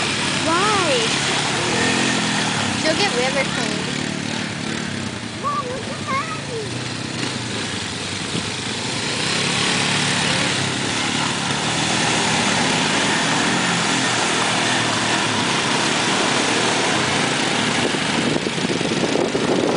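Tyres churn and splash through thick mud and water.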